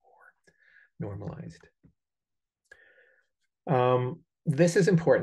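A man speaks calmly, as if lecturing, through a microphone in an online call.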